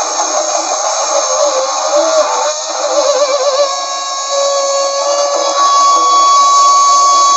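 An electric guitar plays sustained, wavering notes through an amplifier.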